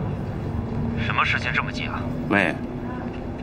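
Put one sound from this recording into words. An older man speaks with animation into a telephone close by.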